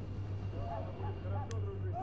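A fire crackles and burns nearby.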